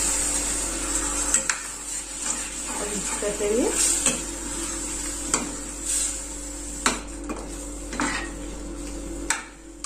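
A metal ladle scrapes and clinks against a metal pot while stirring.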